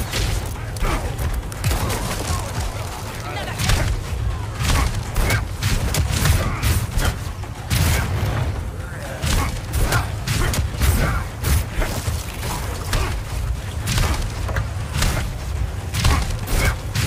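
Gunshots bang repeatedly.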